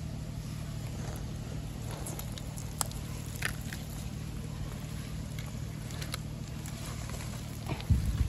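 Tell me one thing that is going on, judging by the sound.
A hand squelches and scrapes through wet mud.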